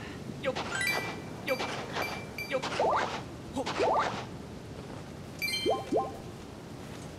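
Short bright chimes ring out.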